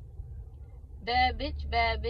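A young woman speaks close to a phone microphone.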